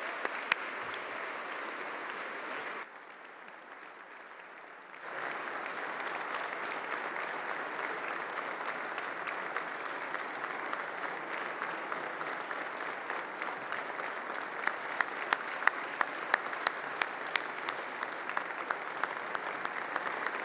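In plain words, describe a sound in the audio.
A crowd cheers and chatters.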